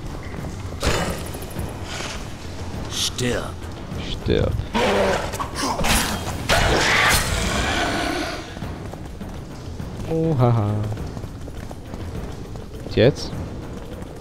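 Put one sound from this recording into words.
Heavy blows and impacts thud and crash during a fight.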